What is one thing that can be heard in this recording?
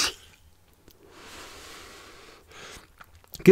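A man exhales a soft breathy puff.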